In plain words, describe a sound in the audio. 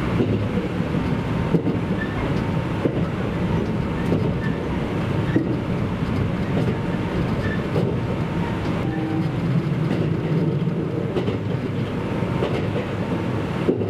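A train rumbles steadily along the track, heard from inside.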